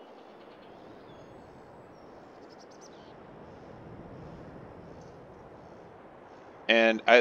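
Wind rustles softly through tall crops.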